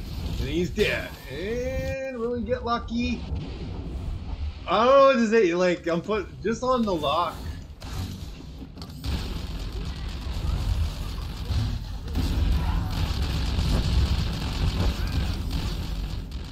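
Energy weapons fire and explosions burst in a fight.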